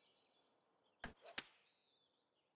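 A golf club strikes a ball with a sharp click.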